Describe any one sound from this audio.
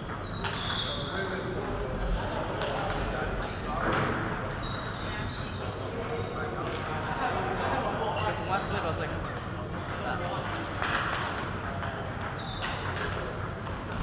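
Sports shoes squeak on the floor.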